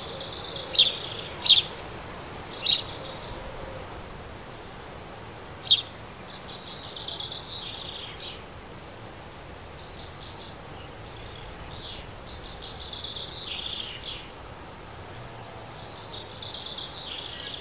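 Sparrows chirp and twitter repeatedly close by.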